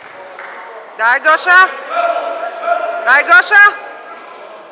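Spectators shout loud, rising cries of encouragement in a large echoing hall.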